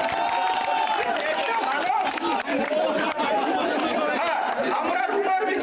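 A crowd of people murmur and cheer.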